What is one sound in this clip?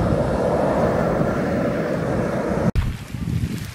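Steam hisses loudly from a vent.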